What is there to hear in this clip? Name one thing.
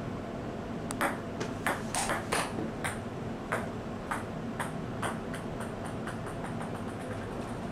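A ping-pong ball bounces on a table and clicks off paddles.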